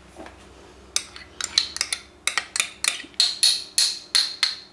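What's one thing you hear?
A spoon scrapes and taps against a bowl in quick clicks.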